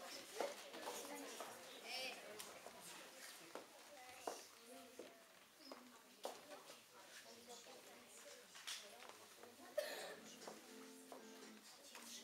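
A woman's heels click on a wooden floor.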